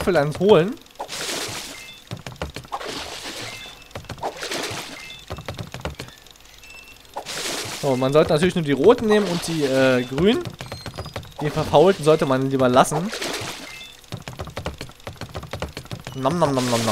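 Water splashes as a head dunks into a tub.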